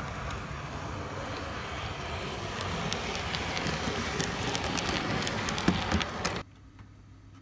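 A model train rumbles and clicks along the track close by.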